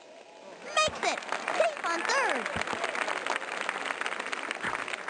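A crowd cheers.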